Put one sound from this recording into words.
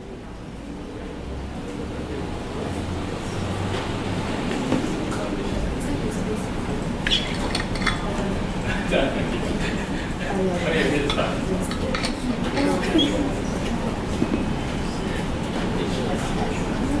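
A man speaks through a microphone, explaining calmly in a room with some echo.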